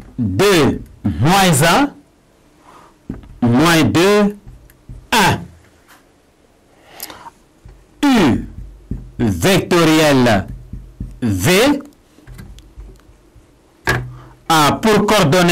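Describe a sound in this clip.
A man speaks clearly and with animation into a close microphone.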